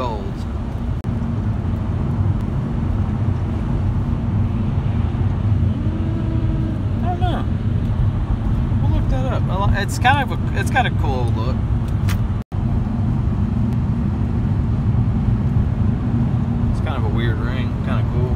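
A car engine hums steadily with low road rumble.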